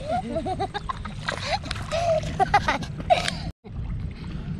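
Children talk and laugh nearby.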